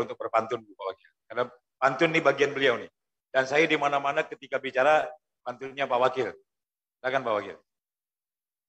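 A man speaks through a microphone over loudspeakers in a hall, in a firm, formal manner.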